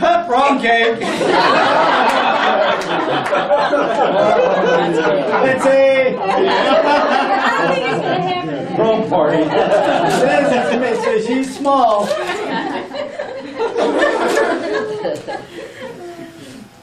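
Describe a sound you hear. Several people talk and laugh in a lively room.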